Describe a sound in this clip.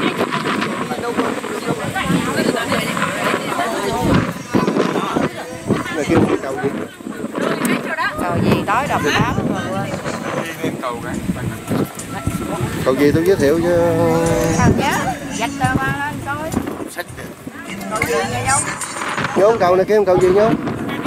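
A crowd of tourists chatters nearby outdoors.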